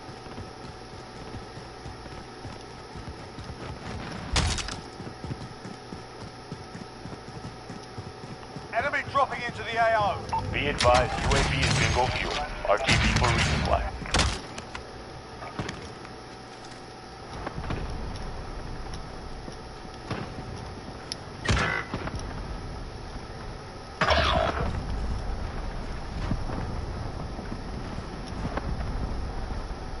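Footsteps thud on hard ground.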